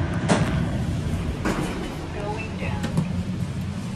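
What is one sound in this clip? A lift button clicks as a finger presses it.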